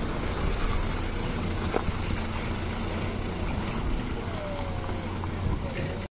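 Truck tyres crunch over wet gravel and stones.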